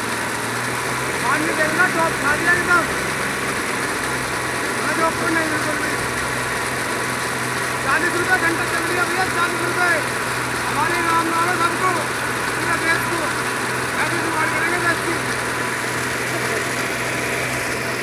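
A diesel pump engine runs with a steady drone.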